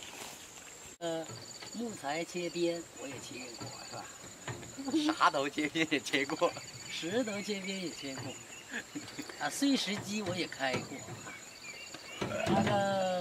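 A second young man talks and laughs nearby.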